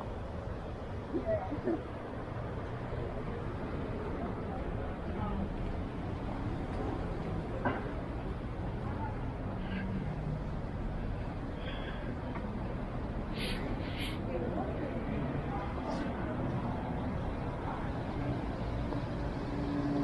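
City traffic rumbles steadily in the distance outdoors.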